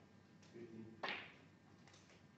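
A snooker cue strikes the cue ball with a sharp tap.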